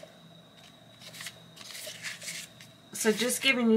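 Paper cards rustle and slide against one another.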